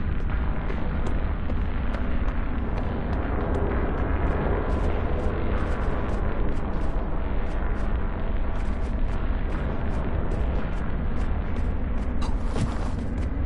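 Light footsteps patter quickly on stone.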